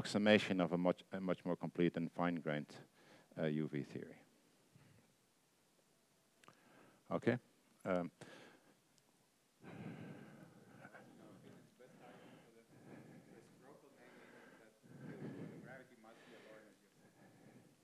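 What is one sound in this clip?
An older man lectures steadily into a headset microphone.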